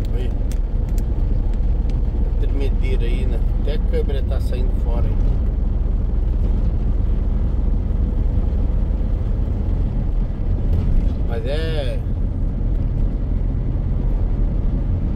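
A vehicle's engine and tyres rumble steadily on a road.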